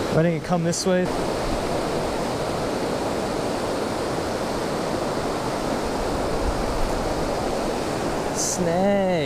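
Water rushes loudly over a weir.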